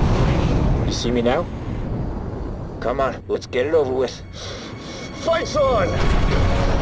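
A man speaks tensely over a radio through an oxygen mask.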